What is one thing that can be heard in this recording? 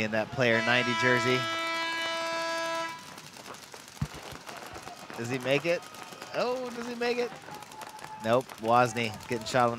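Paintball guns fire in quick bursts outdoors.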